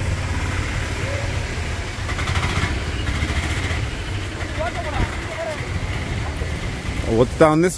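Traffic hums on a wet road nearby.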